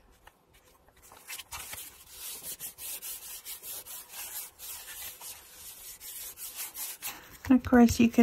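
Hands rub and smooth paper with a soft swishing.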